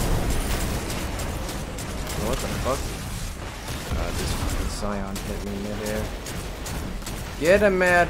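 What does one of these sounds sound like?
Explosions thud heavily.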